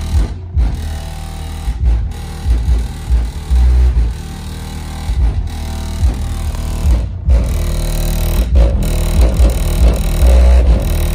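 Deep bass music pounds from subwoofers inside an SUV, heard from outside.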